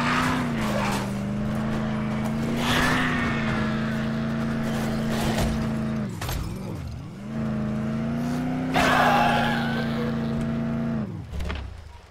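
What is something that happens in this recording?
A car engine hums steadily as the car drives over rough ground.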